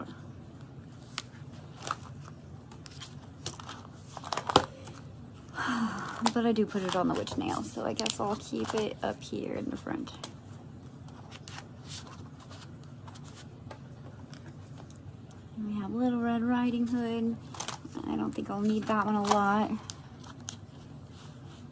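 Stiff plastic pages rustle and flap as they are turned.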